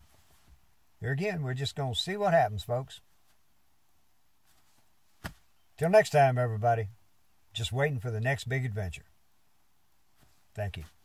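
An elderly man speaks calmly close by, in short phrases with pauses.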